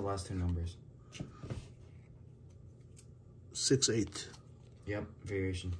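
Cards rustle and slide against each other in hands.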